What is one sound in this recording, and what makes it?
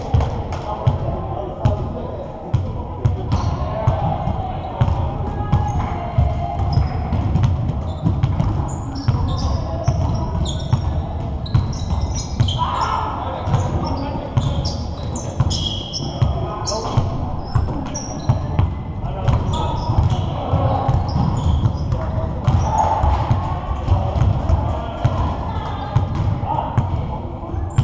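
Young men shout and call out during a game.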